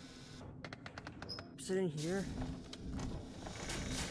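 A drawer slides open with a wooden rumble.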